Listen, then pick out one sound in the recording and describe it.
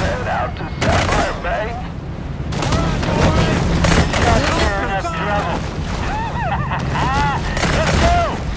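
Water splashes and churns loudly as a large fish thrashes.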